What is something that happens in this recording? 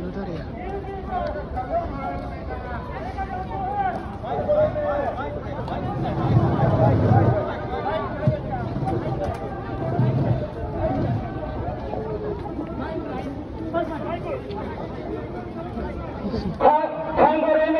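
Men in a crowd shout and talk excitedly outdoors.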